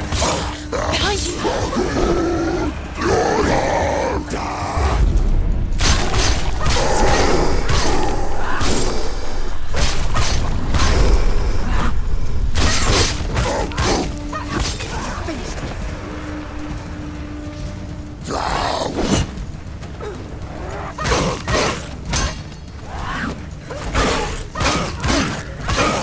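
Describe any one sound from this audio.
Swords clash and ring in rapid strikes.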